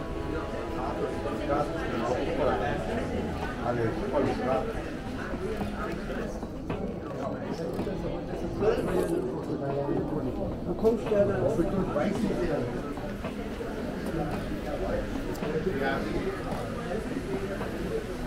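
Footsteps tap on a tiled walkway.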